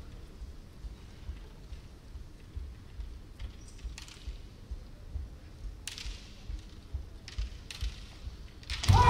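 Bamboo kendo swords clack against each other.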